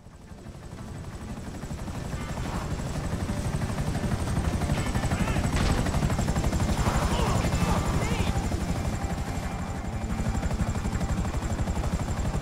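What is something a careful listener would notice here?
Helicopter rotor blades thump steadily and loudly.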